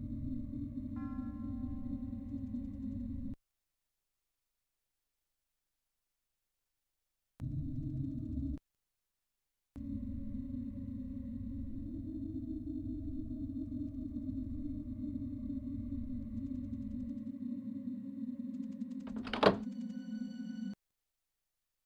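Low, dark game music drones steadily, cutting out now and then.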